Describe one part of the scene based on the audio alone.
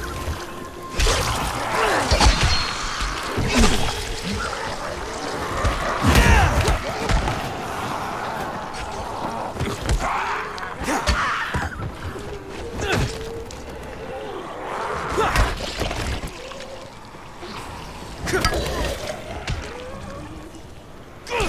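Heavy blows thud and squelch into bodies again and again.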